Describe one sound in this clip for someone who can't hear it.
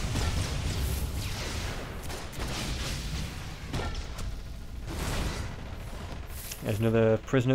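Sci-fi energy blasts whoosh and crackle during a fight.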